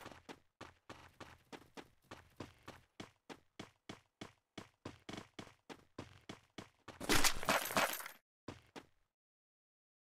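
Footsteps tap quickly and steadily on a hard surface.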